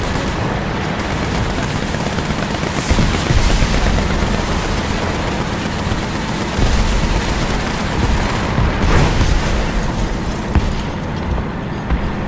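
A tank engine rumbles steadily as the tank drives through brush.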